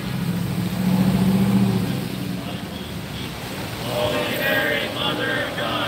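Car tyres hiss past on a wet street.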